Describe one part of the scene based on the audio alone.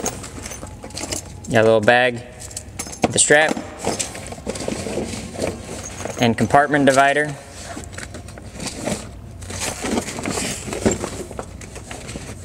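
Fabric rustles as a bag is pushed and tucked into place.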